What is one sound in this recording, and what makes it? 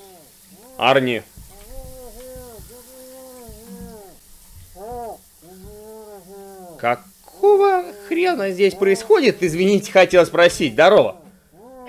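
A young man talks with animation close to a microphone, now and then exclaiming loudly.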